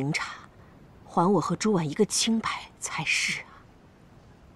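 A woman speaks playfully close by.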